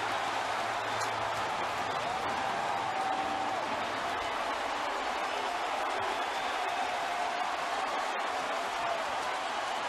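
A large stadium crowd cheers loudly and steadily.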